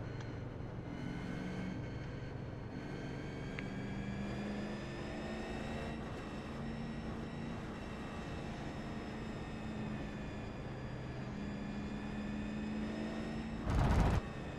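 Other race car engines drone nearby.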